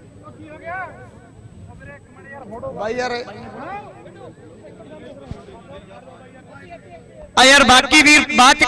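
Several men chat among themselves in a crowd nearby.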